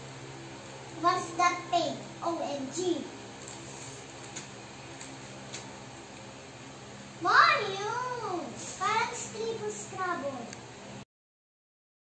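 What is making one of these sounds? A small child babbles and talks excitedly nearby.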